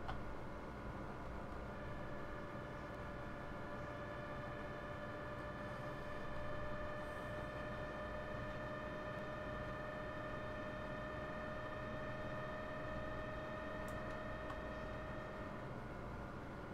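An electric train's motor hums steadily as it rolls slowly.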